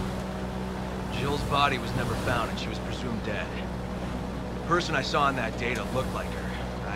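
A man speaks in a calm, low voice.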